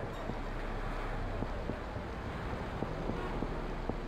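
Footsteps run on wet pavement.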